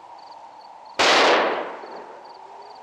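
A gunshot cracks loudly and echoes across open ground.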